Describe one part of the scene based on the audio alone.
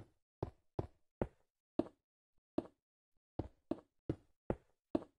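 Grass blocks break in a video game with short, crunching thuds.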